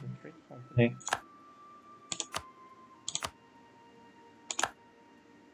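Short interface clicks sound as menus open and close.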